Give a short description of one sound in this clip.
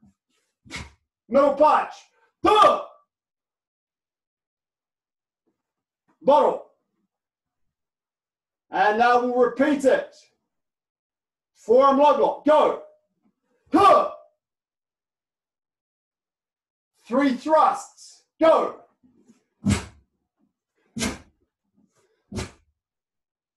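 A man speaks loudly in short bursts, close by.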